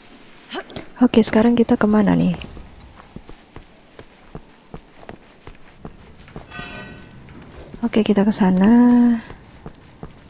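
A young woman speaks with animation, close into a microphone.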